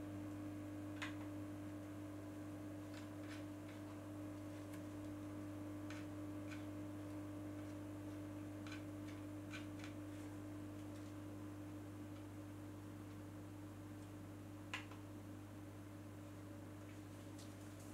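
Fingers tap and click on a small handheld device.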